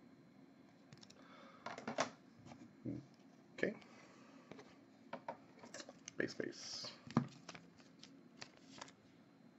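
Trading cards rustle and flick between fingers.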